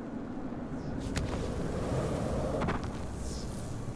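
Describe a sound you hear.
A chain-link fence rattles as someone climbs it.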